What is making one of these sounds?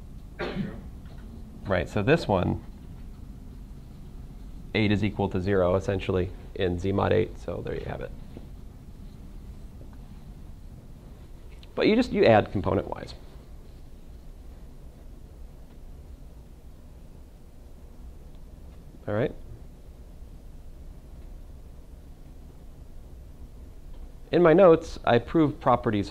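A man speaks calmly in short bursts, like a teacher explaining.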